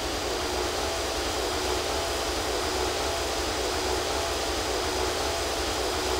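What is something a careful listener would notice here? A twin-engine jet airliner's engines roar at takeoff power.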